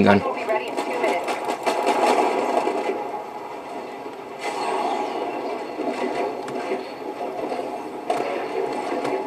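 Gunfire and explosions crackle from a video game, heard through a television speaker.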